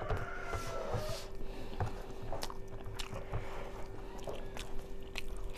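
Fingers squish and pick at soft food on a plate.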